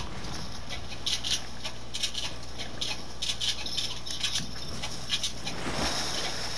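Water splashes as a figure wades through it.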